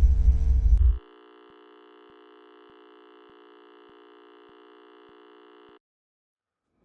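A steady test tone hums.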